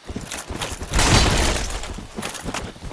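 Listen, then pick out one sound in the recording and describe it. A heavy weapon swings and strikes with a loud crash.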